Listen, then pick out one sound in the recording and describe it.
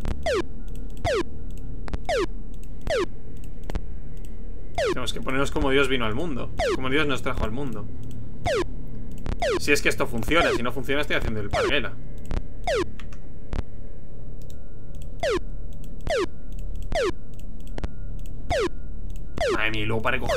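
Short falling electronic chirps repeat as objects are tossed down.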